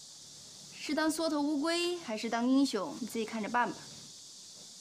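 A young woman speaks sharply, close by.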